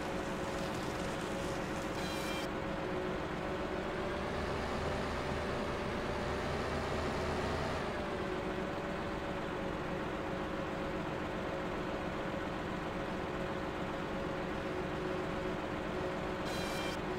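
A heavy machine engine hums steadily throughout.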